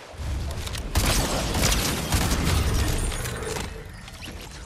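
Gunshots fire in quick, loud bursts.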